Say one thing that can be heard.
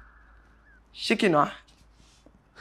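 A young woman speaks up sharply, close by.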